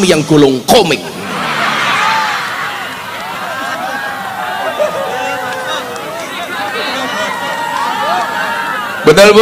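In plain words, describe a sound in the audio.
A crowd laughs.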